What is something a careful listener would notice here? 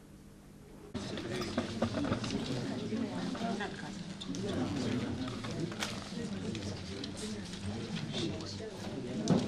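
A crowd murmurs and chatters in an echoing room.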